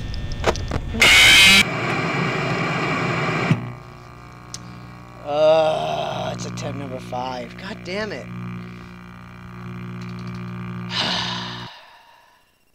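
Loud static hisses.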